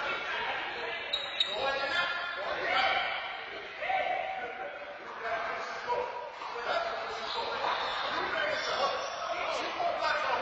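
A young woman talks in a large echoing hall.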